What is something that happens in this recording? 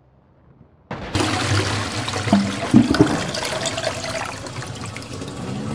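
Water swirls and gushes down a toilet in a loud flush.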